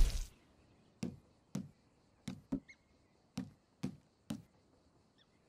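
Short menu clicks tick one after another.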